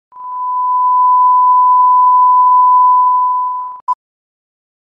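A steady high test tone sounds.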